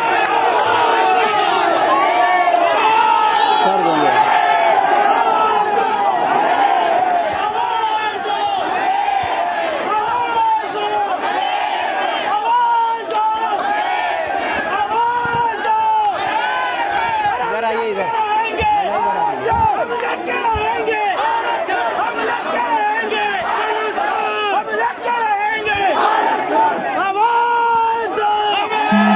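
A large crowd of men and women chants loudly together outdoors.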